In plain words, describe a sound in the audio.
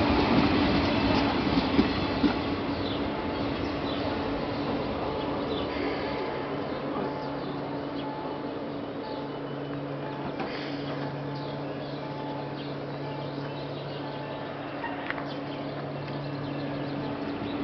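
A standing train's engine hums steadily.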